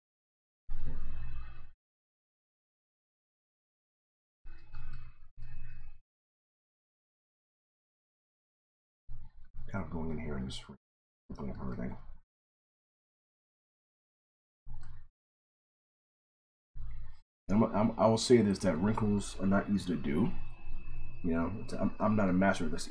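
A man talks calmly into a microphone, with pauses.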